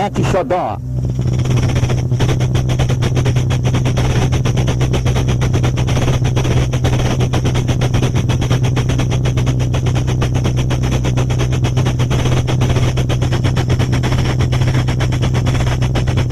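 Drums beat a fast rhythm.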